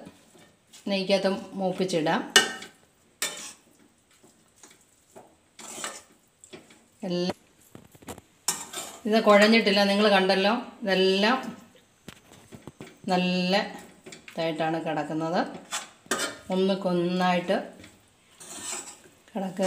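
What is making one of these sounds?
A metal spatula scrapes and clatters against a metal pan while stirring.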